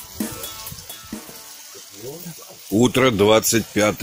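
Potatoes sizzle in a frying pan over a fire.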